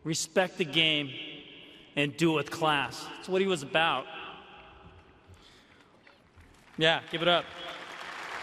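A man speaks slowly into a microphone, echoing through a large open space.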